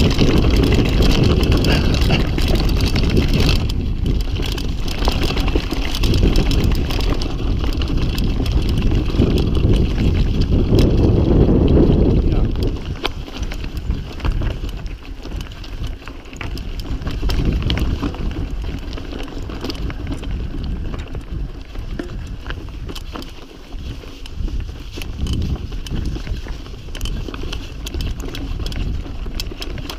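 A mountain bike rattles and clatters over a rough, rocky trail.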